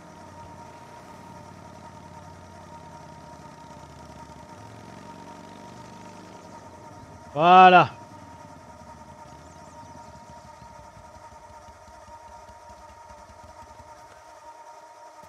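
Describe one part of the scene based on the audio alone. A motorcycle engine rumbles as the bike rides along.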